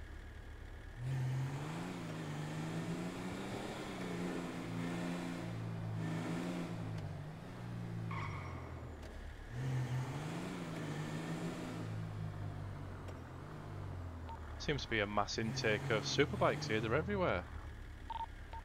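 A car engine hums and revs as the car drives and turns.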